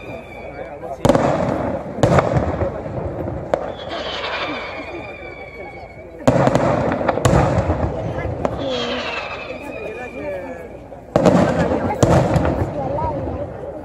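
Aerial firework shells burst with loud booms echoing across a valley.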